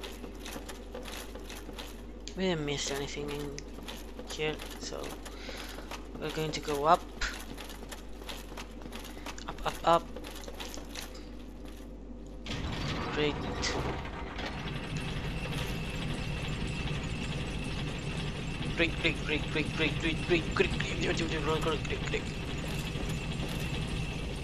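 Armoured footsteps clank quickly on stone and wooden stairs.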